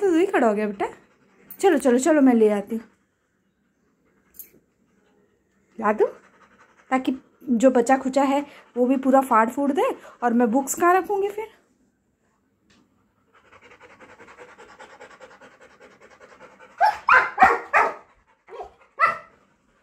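A dog howls and whines close by, in short bursts.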